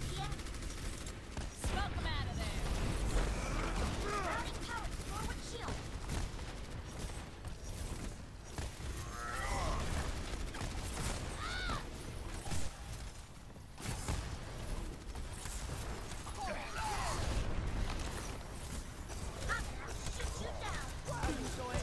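Weapons fire and magic blasts crackle in a video game battle.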